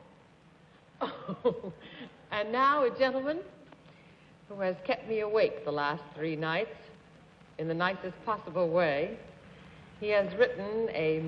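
An older woman speaks warmly and cheerfully, heard through a microphone.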